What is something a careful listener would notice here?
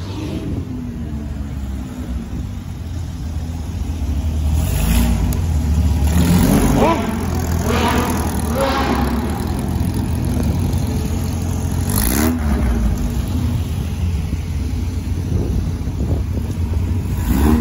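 An old air-cooled flat-four van engine rumbles as the van pulls away slowly.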